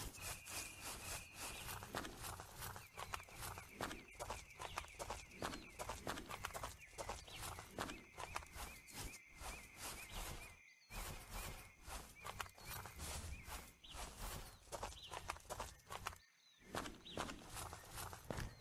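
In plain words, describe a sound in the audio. Footsteps crunch steadily on grass and dirt.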